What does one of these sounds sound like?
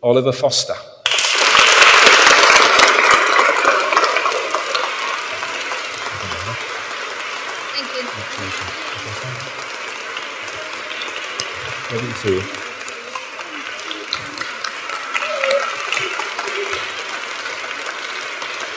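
An audience applauds steadily, slowly fading.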